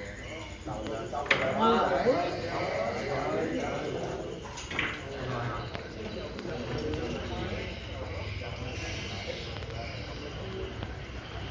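Men talk nearby in a murmur of conversation.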